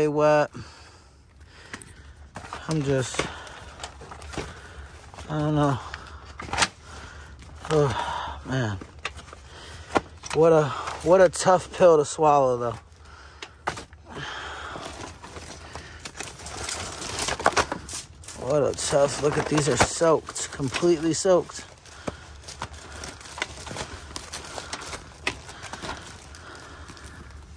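Magazines and papers rustle and shuffle as a hand sorts through them.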